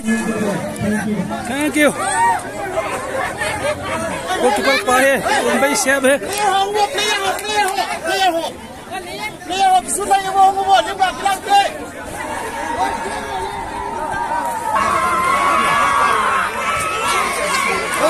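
A crowd of men and women chatter and shout excitedly outdoors.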